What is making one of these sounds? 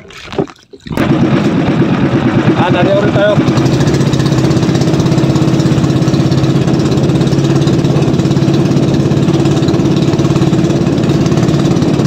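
A boat's motor runs with a steady loud drone.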